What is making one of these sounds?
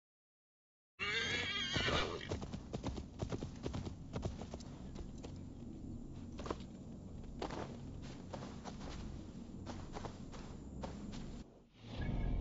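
A horse's hooves thud on grassy ground.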